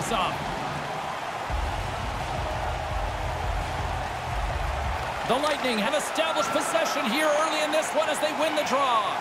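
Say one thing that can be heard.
A crowd murmurs in a large arena.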